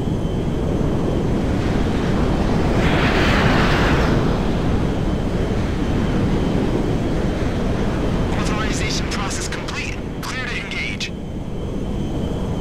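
A large jet engine roars steadily as an airplane flies.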